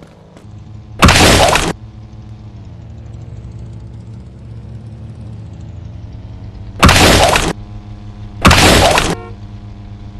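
A gun fires in short loud bursts.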